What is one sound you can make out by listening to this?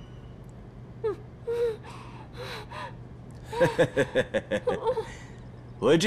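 A young woman sobs and whimpers, muffled through a gag.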